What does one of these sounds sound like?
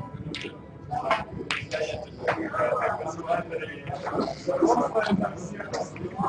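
Snooker balls clack together.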